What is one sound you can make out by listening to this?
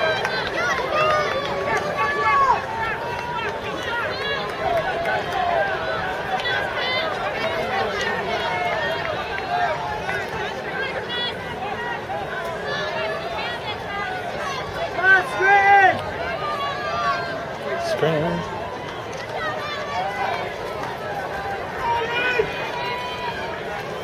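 A crowd of spectators chatters and cheers loudly outdoors.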